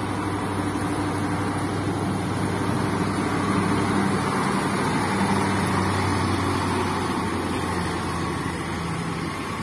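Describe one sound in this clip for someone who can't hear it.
A truck's diesel engine grows louder as it climbs past up close.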